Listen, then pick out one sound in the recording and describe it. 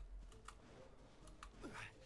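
Footsteps patter quickly over grass.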